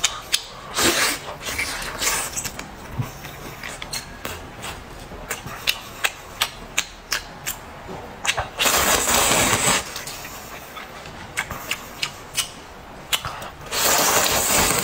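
A man chews food with wet smacking sounds.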